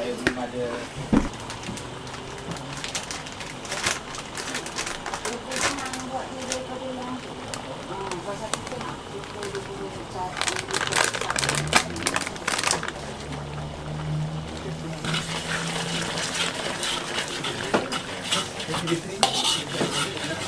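Liquid bubbles and sizzles in a wok.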